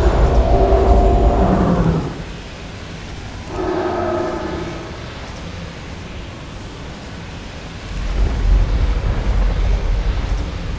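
Magic spells crackle and hum in a game battle.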